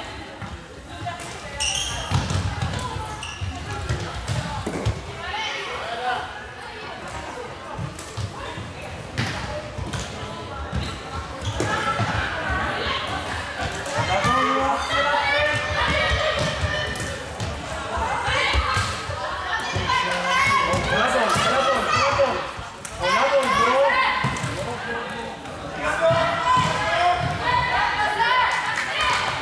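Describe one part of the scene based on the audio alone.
Sticks clack against a ball and against each other.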